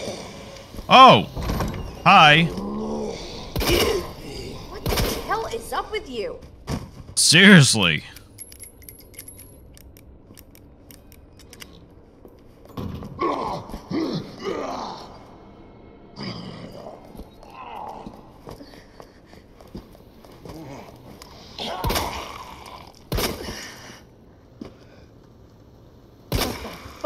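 A zombie groans and gurgles hoarsely.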